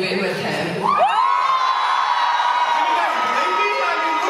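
A young man speaks cheerfully through a microphone.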